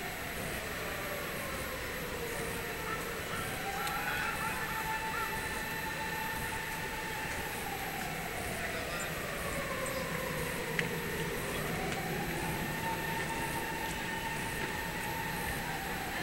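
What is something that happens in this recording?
Footsteps tap on pavement as people walk past.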